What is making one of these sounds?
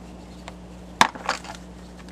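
Metal clinks sharply as a man works on an engine.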